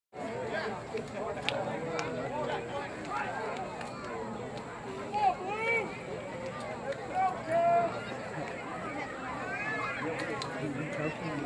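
Young boys talk and shout together outdoors.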